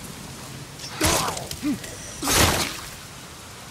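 A bat swings and thuds hard into something, twice.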